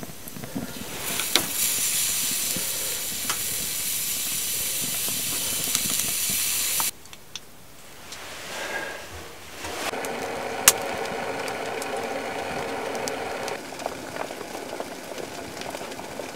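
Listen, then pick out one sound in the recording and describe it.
A wood fire crackles and pops in a stove.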